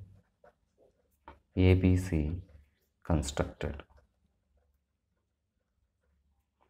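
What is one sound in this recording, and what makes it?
A marker squeaks softly on paper.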